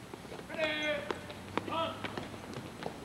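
A man shouts drill commands loudly outdoors.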